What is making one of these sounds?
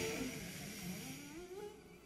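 An acoustic guitar is plucked softly.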